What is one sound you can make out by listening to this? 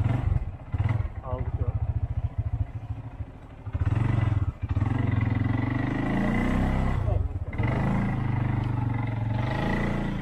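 A quad bike engine revs and chugs up a rough track.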